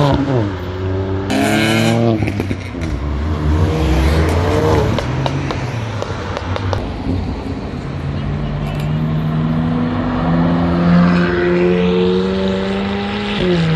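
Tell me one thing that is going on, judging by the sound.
Car exhausts crackle and pop as cars speed away.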